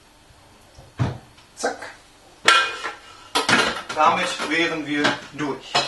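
A metal bowl clanks and clatters against a counter.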